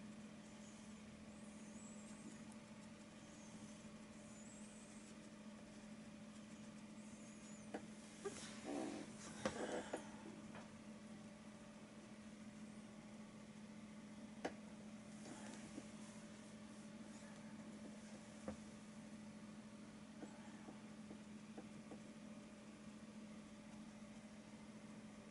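A paintbrush dabs and strokes softly on canvas.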